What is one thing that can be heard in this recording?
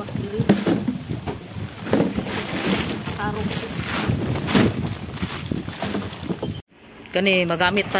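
Plastic bottles clatter on the ground.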